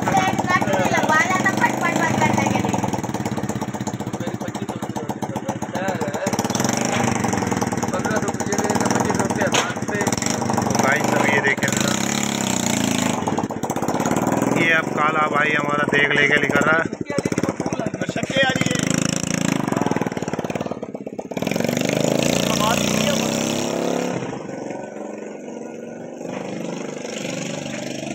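A motorcycle engine runs and then pulls away.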